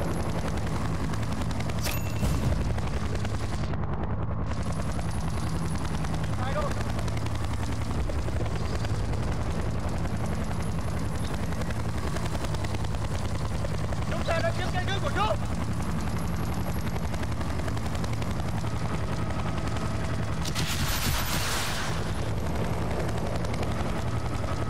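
A helicopter's rotor thumps steadily and loudly overhead.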